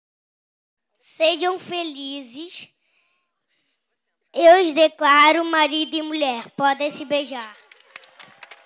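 A young boy speaks into a microphone, heard through a loudspeaker.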